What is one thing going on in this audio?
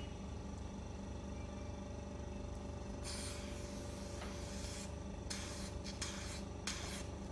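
A skin care machine hums.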